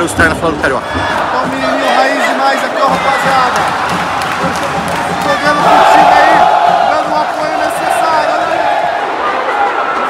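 A large crowd sings and chants loudly in a big open stadium.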